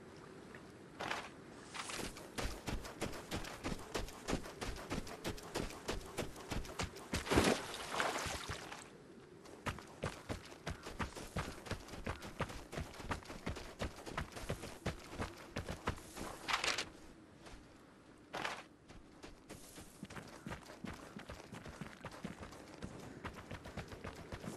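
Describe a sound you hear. Footsteps crunch through snow at a quick pace.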